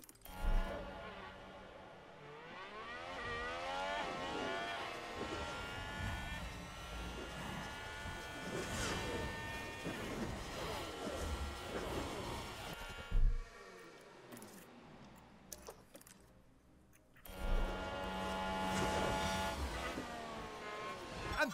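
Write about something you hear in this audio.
Racing car engines whine and rise in pitch as the cars speed up through the gears.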